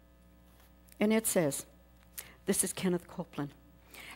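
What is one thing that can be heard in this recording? An elderly woman speaks expressively into a microphone.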